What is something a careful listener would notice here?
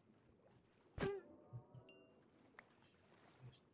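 A creature is struck with short thuds.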